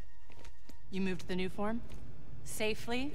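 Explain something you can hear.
A young woman asks a question in a firm voice.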